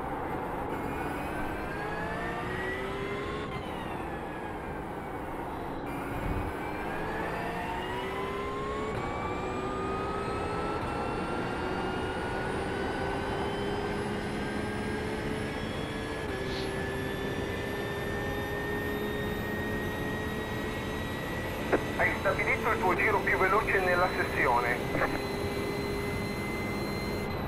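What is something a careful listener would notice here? A racing car engine roars, revving up and dropping in pitch at each gear change.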